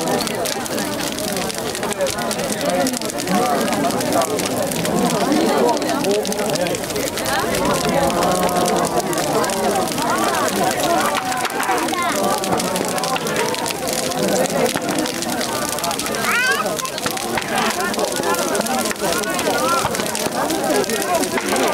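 A crowd of people chatters nearby.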